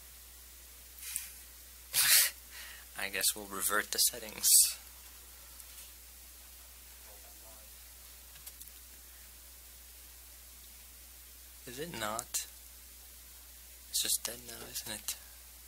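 A man speaks in short bursts through a microphone in a large room.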